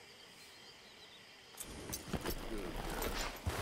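A horse's hooves thud softly on soft ground.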